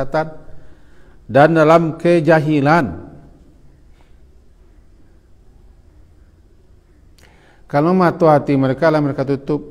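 A middle-aged man speaks calmly into a close microphone, reading out and pausing.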